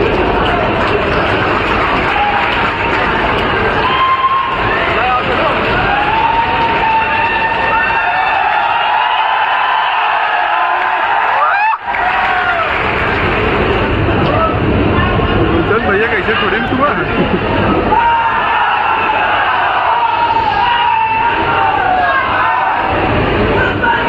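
A crowd of men cheers and chants loudly nearby.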